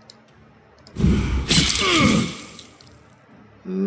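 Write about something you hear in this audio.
A magical blast whooshes and crackles loudly.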